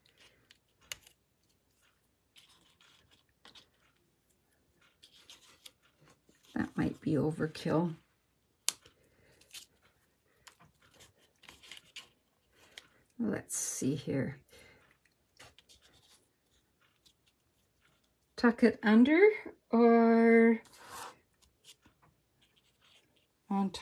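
Stiff paper rustles and taps softly on a table.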